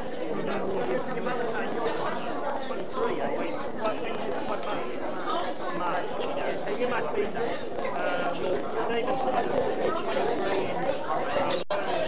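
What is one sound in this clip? Many voices chatter in a busy room.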